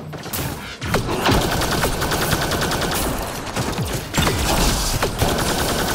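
Laser beams zap and hum.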